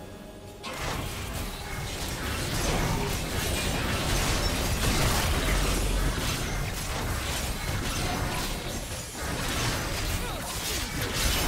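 Game battle effects of spells and blows crash and crackle rapidly.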